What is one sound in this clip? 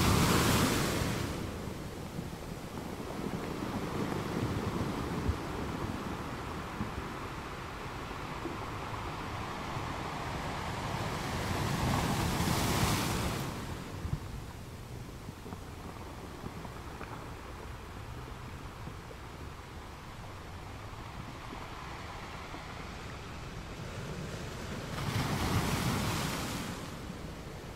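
Sea water washes and fizzes around rocks close by.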